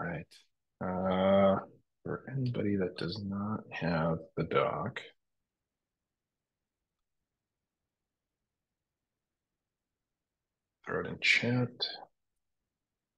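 A man speaks calmly through an online call microphone, pausing between phrases.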